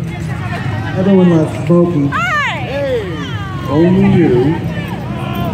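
A young woman cheers loudly close by.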